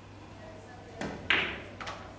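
A cue stick strikes a ball with a sharp click.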